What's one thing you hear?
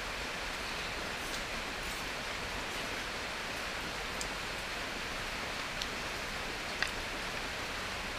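A spoon and chopsticks clink lightly against a plate.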